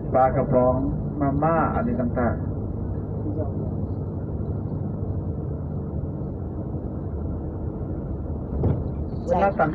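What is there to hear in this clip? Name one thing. A truck's engine rumbles steadily from inside the cab.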